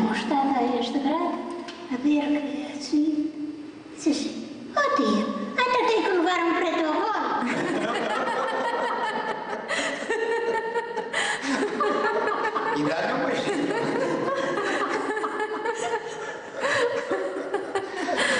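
An elderly woman speaks calmly and warmly, close by.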